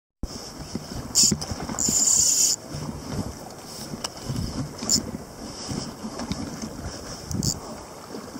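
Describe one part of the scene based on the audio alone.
Wind rushes past outdoors on open water.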